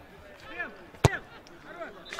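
A football is kicked with a solid thud.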